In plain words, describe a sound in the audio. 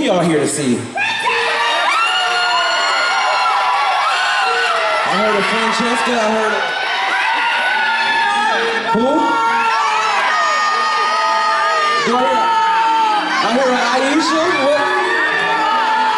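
A large choir of men and women sings together, loud and full.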